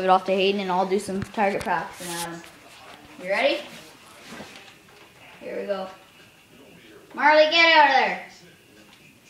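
A child speaks excitedly close by.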